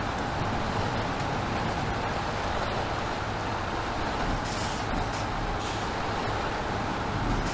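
Truck tyres churn and splash through mud and shallow water.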